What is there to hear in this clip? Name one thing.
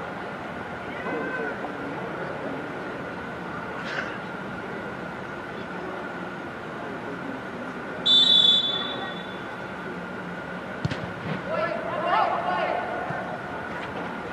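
Young men shout to each other from a distance across a large echoing indoor hall.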